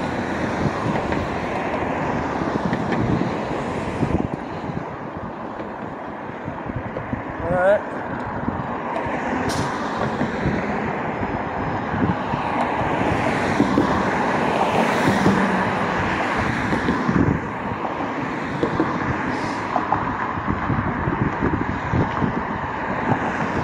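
Traffic hums steadily along a nearby street.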